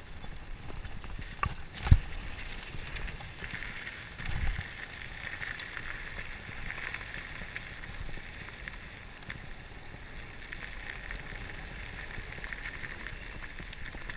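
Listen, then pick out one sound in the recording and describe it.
Bicycle tyres roll and crunch over dirt and gravel.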